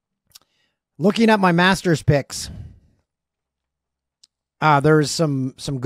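A middle-aged man speaks calmly and close into a microphone, in short bursts with pauses.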